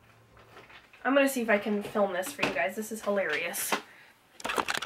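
A young woman speaks close to a microphone with animation.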